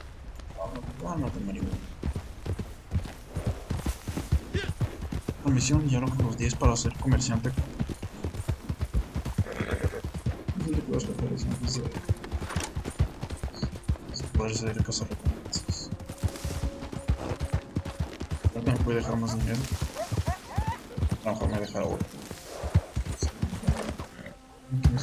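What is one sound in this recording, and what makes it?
Horse hooves thud rapidly on the ground.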